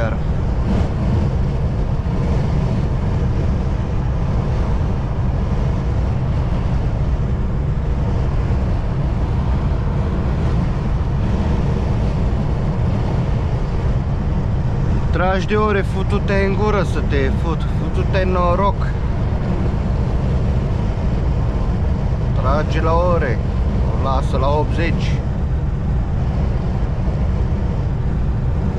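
A truck engine drones steadily with road noise from inside the cab.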